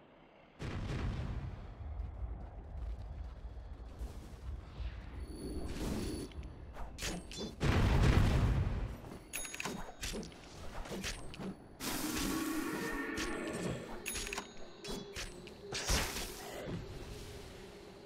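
Game sounds of fighting clash and burst with spell effects.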